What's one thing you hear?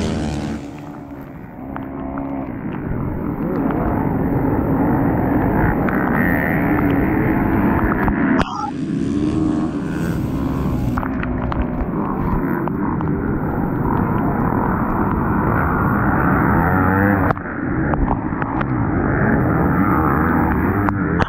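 A dirt bike engine revs hard close by.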